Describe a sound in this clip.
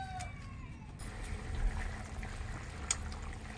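Soup bubbles and simmers in a pot.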